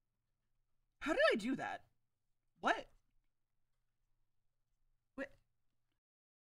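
A young woman speaks briefly through a microphone with animation.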